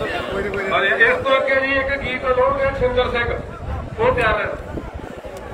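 A crowd of men chants and shouts in reply.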